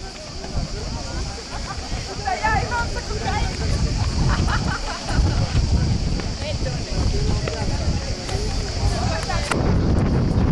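A group of adults talks outdoors at a distance.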